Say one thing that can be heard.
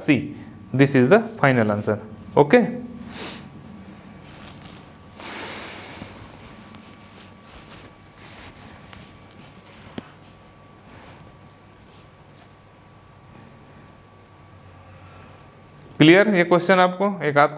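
A man speaks calmly into a clip-on microphone, close by.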